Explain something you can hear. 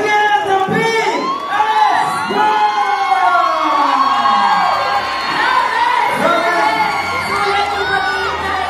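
A large crowd of young people cheers and screams.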